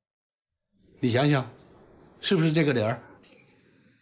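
A middle-aged man speaks calmly and earnestly nearby.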